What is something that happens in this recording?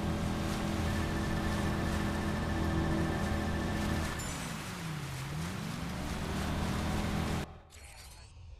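Water splashes and sprays against a speeding boat's hull.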